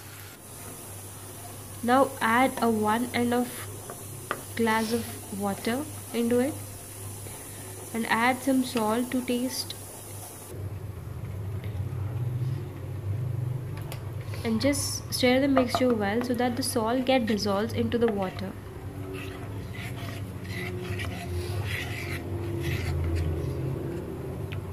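A spatula scrapes and stirs in a metal pan.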